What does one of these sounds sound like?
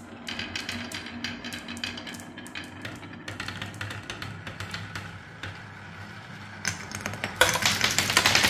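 Marbles rattle and click as they roll along a wooden track.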